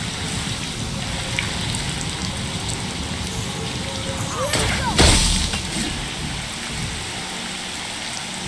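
Water pours down steadily in a rushing stream.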